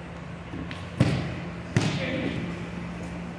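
Bodies thump heavily onto a padded mat in an echoing room.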